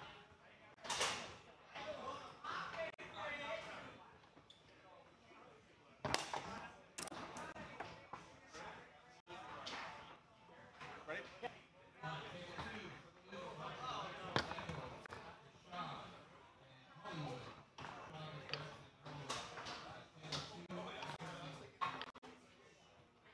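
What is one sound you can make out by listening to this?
Foosball rods clack and rattle as players spin them.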